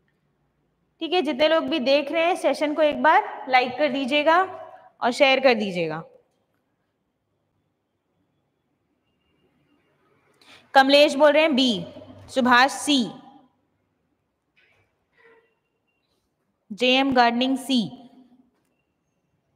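A young woman speaks calmly into a close microphone, in bursts with pauses.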